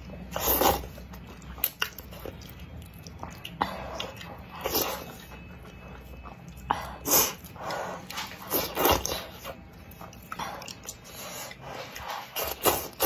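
A young woman slurps noodles loudly and close up.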